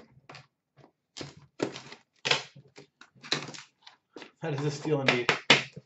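Plastic wrapping crinkles as it is pulled off.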